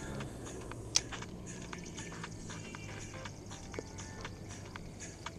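A fishing reel clicks and whirs as its handle is cranked.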